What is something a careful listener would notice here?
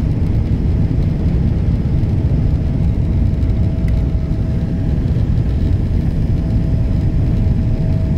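Jet engines roar steadily inside an airliner cabin as it climbs.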